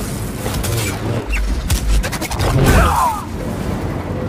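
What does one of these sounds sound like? A laser sword hums and clashes against armour.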